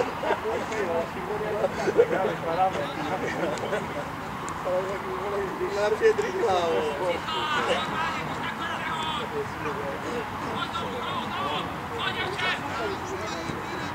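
Young men shout to each other across an open playing field outdoors.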